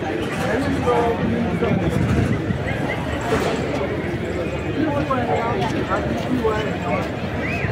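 A crowd of men and women chatters and calls out loudly nearby, outdoors.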